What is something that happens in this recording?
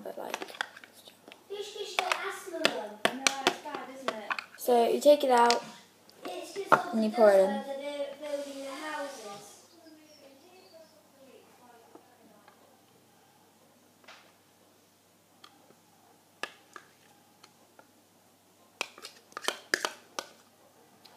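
A spoon clinks and scrapes against a plastic bowl.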